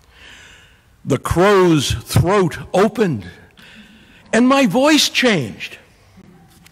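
A middle-aged man speaks loudly and with animation through a microphone, his voice rising and falling.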